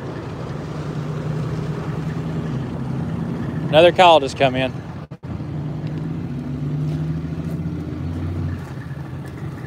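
A pickup truck's engine idles with a low, steady rumble.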